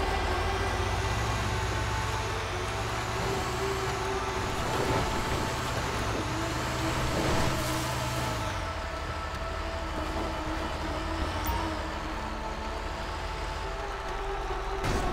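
Tyres crunch over a rough dirt track.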